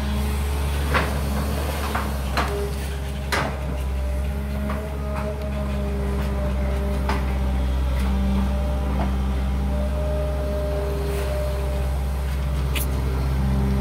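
Metal clanks and knocks sharply as an excavator arm works.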